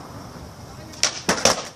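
A wooden crate knocks as a skateboard hits it.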